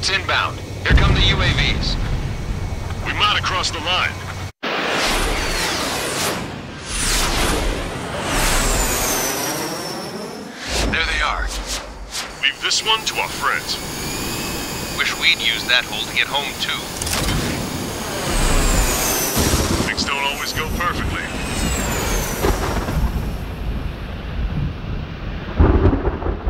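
Jet engines roar loudly as fighter planes fly past.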